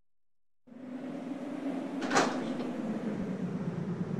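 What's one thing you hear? A heavy door swings open.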